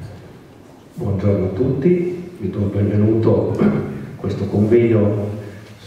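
A man speaks calmly through a microphone from further off.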